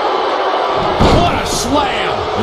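A body slams hard onto the ring mat.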